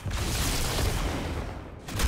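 An energy blast bursts with a crackle.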